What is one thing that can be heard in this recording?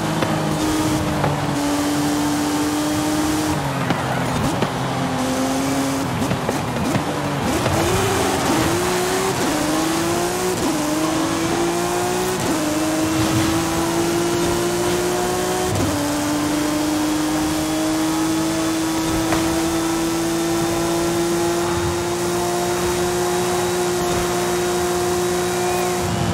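A race car engine roars at high speed, shifting up through the gears.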